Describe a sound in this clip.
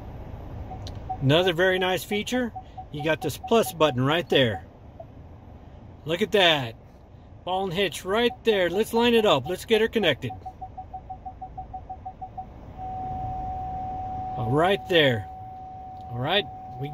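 A reversing sensor beeps in rising pulses, then turns to one steady tone.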